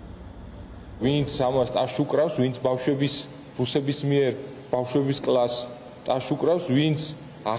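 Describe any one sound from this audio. A man speaks calmly and formally into a microphone.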